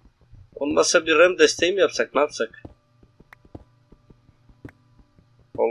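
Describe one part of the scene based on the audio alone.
A pickaxe chips steadily at stone with quick, light knocks.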